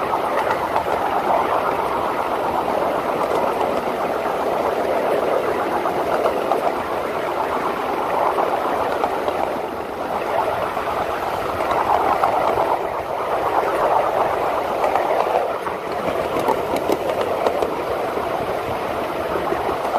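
Metal wheels rattle and clack over rail joints.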